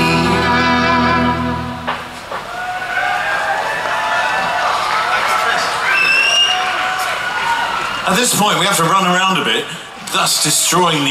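An electric guitar plays through loud amplifiers.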